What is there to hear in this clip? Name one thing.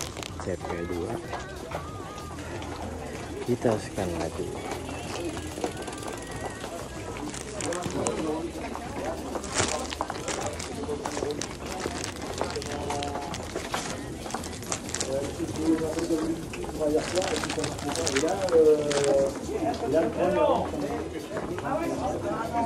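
Several men chat in a crowd nearby.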